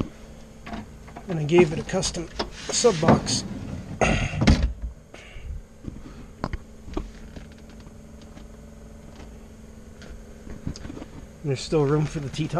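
A hand taps and rubs against plastic interior trim inside a car.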